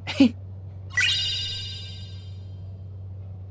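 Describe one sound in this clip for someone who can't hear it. A bright chime rings out and slowly fades.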